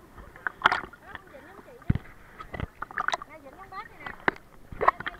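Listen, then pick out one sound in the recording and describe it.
Water gurgles and bubbles right against the microphone.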